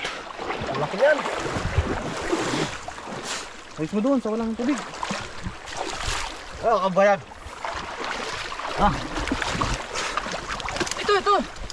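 Water splashes as men wade through a shallow stream.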